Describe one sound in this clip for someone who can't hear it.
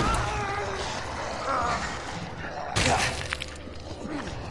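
A monster snarls and roars.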